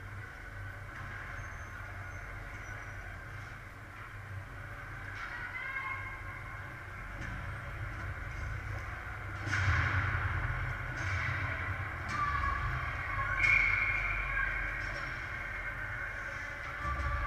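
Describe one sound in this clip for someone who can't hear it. Skates scrape and hiss on ice in a large echoing rink.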